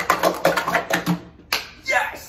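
Plastic cups clatter rapidly as they are stacked and unstacked.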